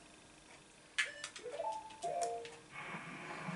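Short electronic menu chimes beep from a television.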